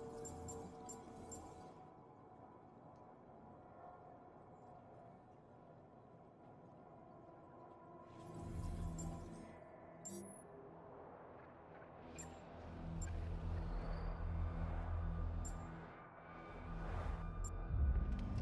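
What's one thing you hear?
A game menu clicks softly as items are picked.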